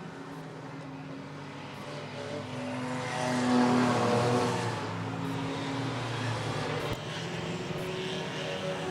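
Race car engines roar and drone as cars lap a track.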